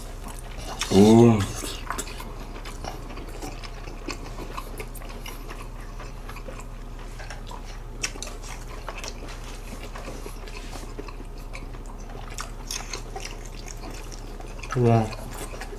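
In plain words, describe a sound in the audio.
A young man chews food noisily.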